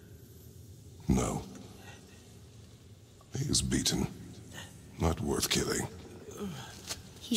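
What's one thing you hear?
A man speaks in a deep, low voice.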